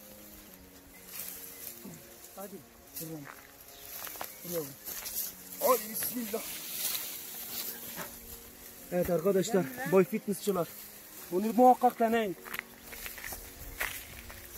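Dry hay rustles and crackles as a heavy bundle is carried.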